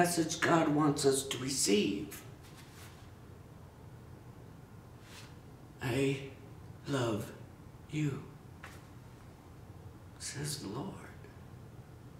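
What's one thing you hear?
A middle-aged man speaks close up, slowly and earnestly, with long pauses.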